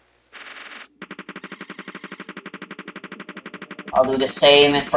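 Rapid electronic shots fire in a quick, steady rhythm.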